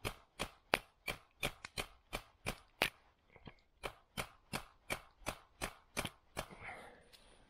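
Wooden pegs are hammered into wood with quick, sharp taps.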